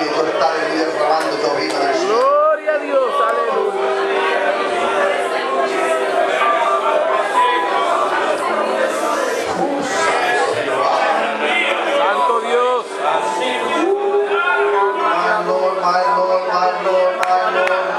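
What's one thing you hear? A man preaches loudly and passionately through a microphone and loudspeakers.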